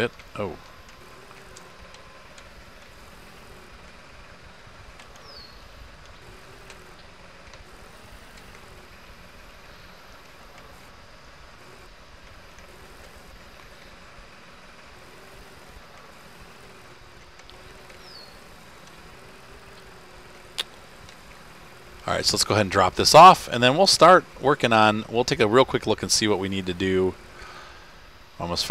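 A tractor engine hums steadily as the tractor drives along.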